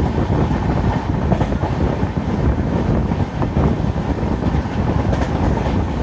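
Wind rushes past an open train door.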